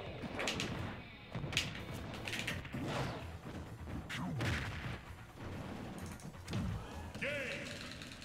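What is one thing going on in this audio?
Punches and blasts thud in a fast-paced fighting game.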